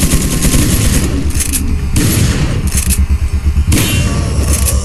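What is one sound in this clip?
A shotgun fires several loud blasts in an echoing hall.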